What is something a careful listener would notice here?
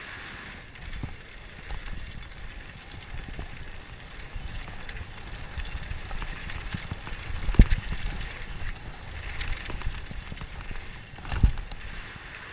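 A bicycle's frame and chain rattle and clunk over bumps.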